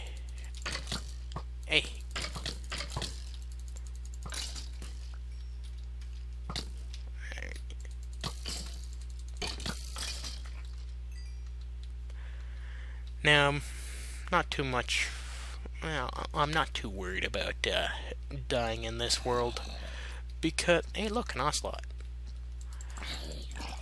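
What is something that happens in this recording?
A sword strikes a creature with quick dull thuds.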